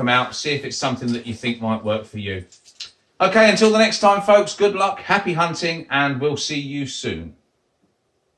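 A middle-aged man speaks calmly and close to the microphone.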